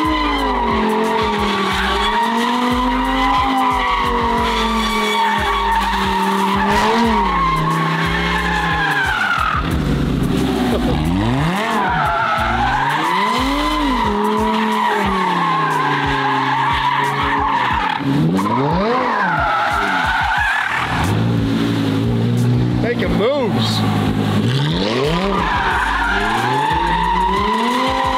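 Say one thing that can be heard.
A car engine revs hard and rises and falls in pitch throughout.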